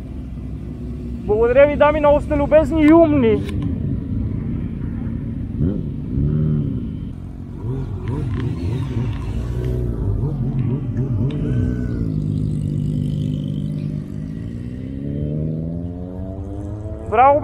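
Motorcycle engines rumble and rev nearby, outdoors.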